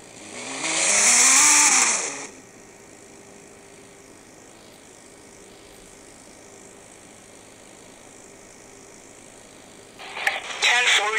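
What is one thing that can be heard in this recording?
A sports car engine revs loudly, rising and falling in pitch, then settles to a low steady hum.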